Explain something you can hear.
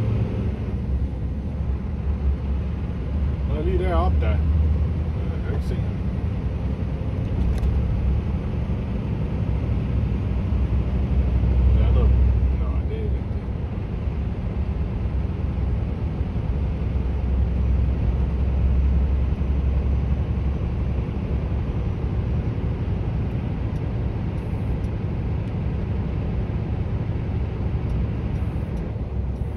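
Wind buffets a microphone outdoors, low and steady.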